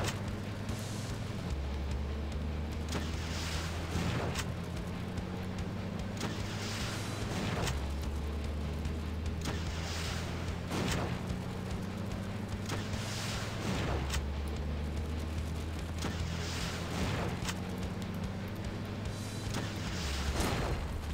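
Car engines rumble steadily.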